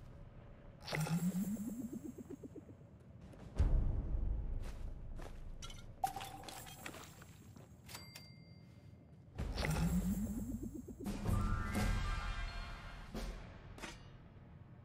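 A short rising musical jingle plays.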